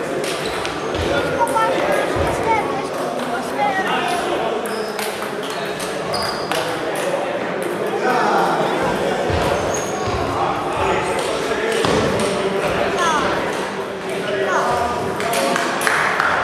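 Several men talk and call out nearby in a large echoing hall.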